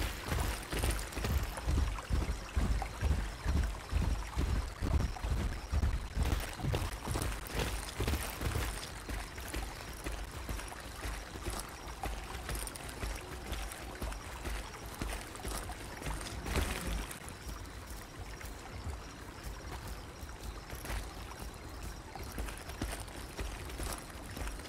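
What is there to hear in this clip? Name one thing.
Heavy footsteps thud steadily on the ground as a large creature walks.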